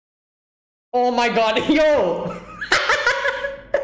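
A young man laughs loudly and heartily close by.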